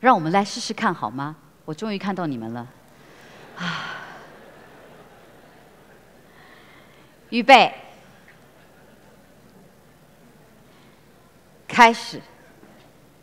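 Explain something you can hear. A young woman speaks with feeling through a microphone.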